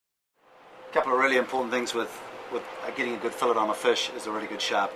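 A middle-aged man talks calmly and clearly, close by.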